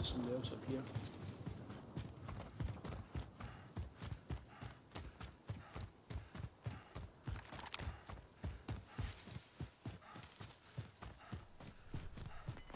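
Footsteps of a person running thud on a dirt path.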